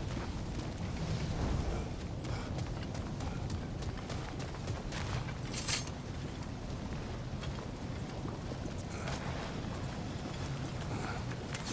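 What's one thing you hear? Heavy footsteps crunch on stony ground.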